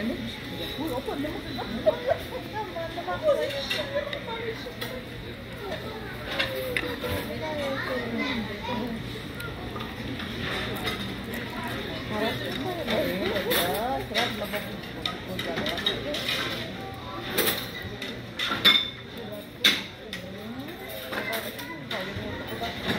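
A middle-aged woman talks calmly close by.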